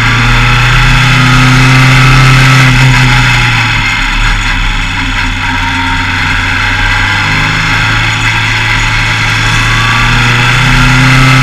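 A racing car engine roars loudly up close, its pitch dropping and rising with the gears.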